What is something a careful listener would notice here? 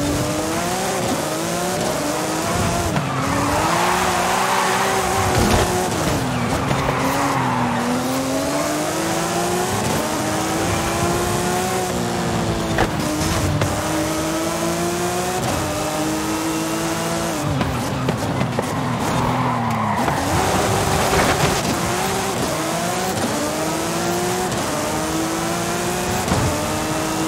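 A sports car engine roars and revs up and down through the gears.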